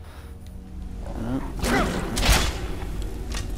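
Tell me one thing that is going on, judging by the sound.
A large dog snarls and growls.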